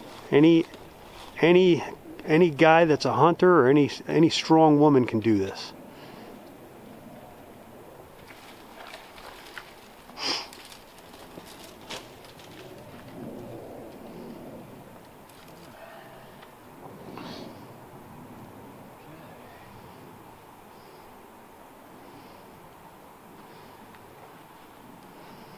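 Boots scrape and knock against tree bark.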